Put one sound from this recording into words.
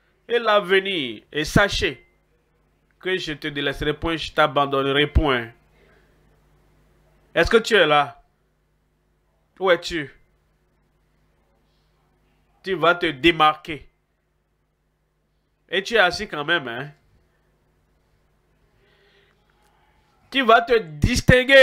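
An elderly man speaks with animation through a microphone, in short bursts with pauses.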